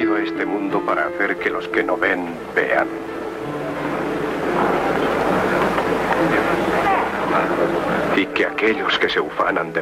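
A man speaks calmly and solemnly.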